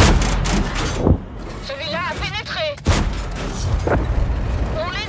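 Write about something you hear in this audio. Loud gunshots and explosions boom in quick bursts.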